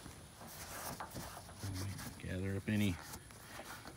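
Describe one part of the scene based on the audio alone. A cloth rubs against metal.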